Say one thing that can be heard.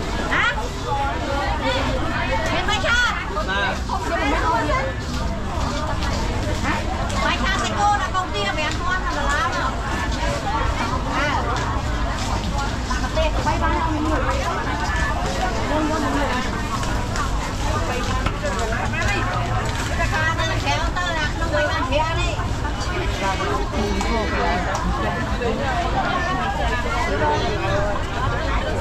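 Plastic bags rustle as fish are handled.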